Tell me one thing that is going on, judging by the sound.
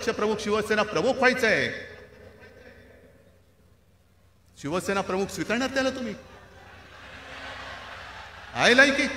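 A man speaks forcefully into a microphone over loudspeakers.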